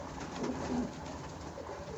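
A domestic pigeon flaps its wings.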